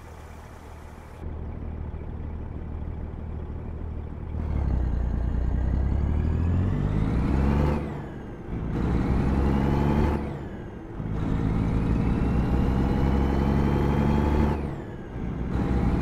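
A truck engine roars, rising in pitch and dropping back with each gear change.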